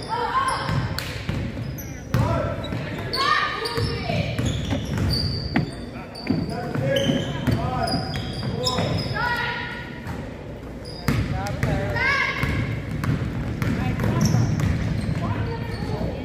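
A basketball bounces on the floor with echoing thuds.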